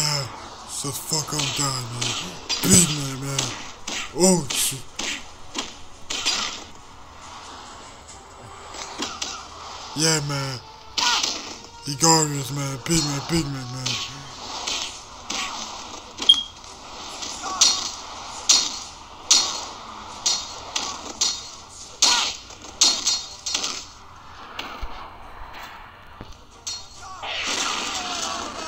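Punches and blows thud repeatedly in a fast brawl.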